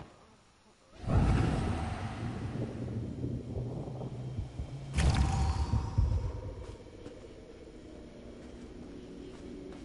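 Wind rushes loudly past, with a deep roar.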